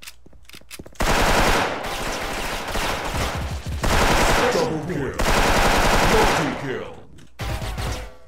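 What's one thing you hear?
A rifle fires in rapid bursts of gunfire.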